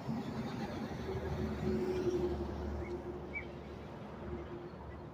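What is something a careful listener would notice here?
A truck rumbles past on a road.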